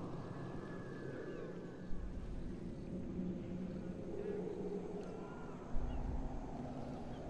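An eagle screeches overhead.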